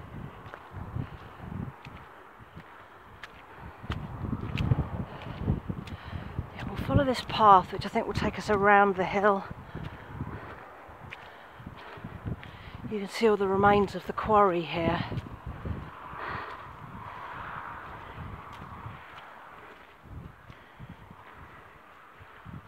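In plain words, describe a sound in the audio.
Footsteps tread on grass and a muddy path.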